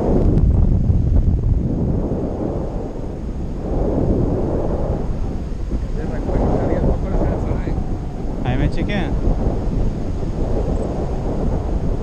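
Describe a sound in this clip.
Strong wind roars and buffets against a microphone.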